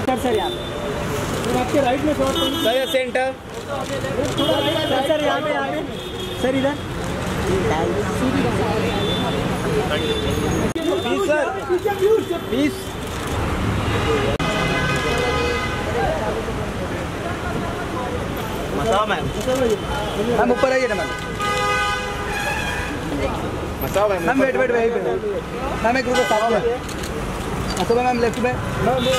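Several men shout and call out excitedly nearby.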